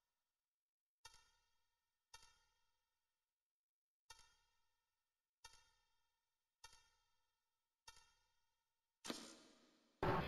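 Short electronic beeps sound one after another at an even pace.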